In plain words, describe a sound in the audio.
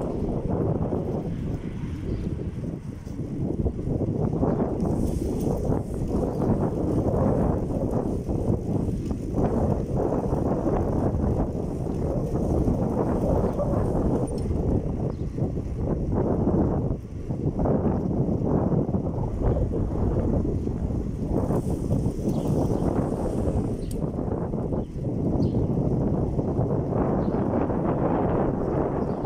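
Wind rumbles and buffets loudly against a moving rider.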